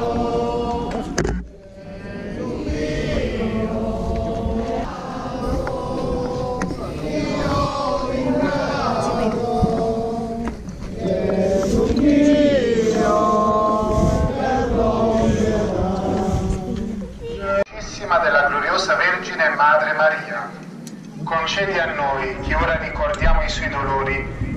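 A group of men sings a slow, mournful hymn together outdoors.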